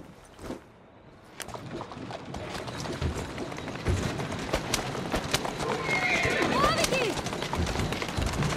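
Horse hooves clatter on cobblestones.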